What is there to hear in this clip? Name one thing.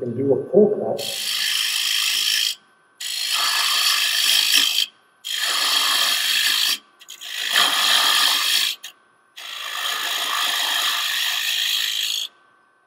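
A chisel scrapes and shaves spinning wood in repeated long bursts.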